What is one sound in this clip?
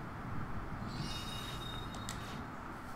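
A magical spell shimmers and sparkles.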